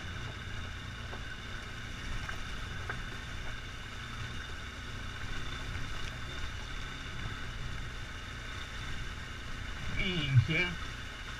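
A motorcycle engine hums steadily at low revs.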